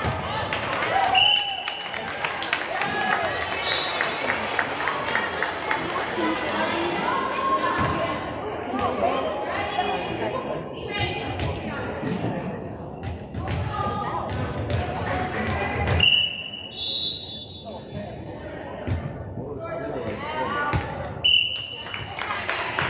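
Shoes squeak on a gym floor.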